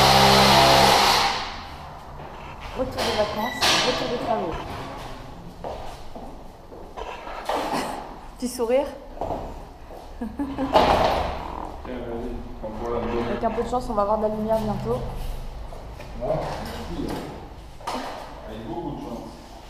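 A young woman talks with animation close to a microphone, in an echoing empty room.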